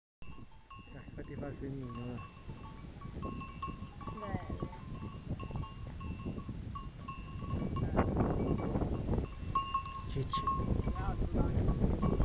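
Wind blows outdoors, buffeting loudly.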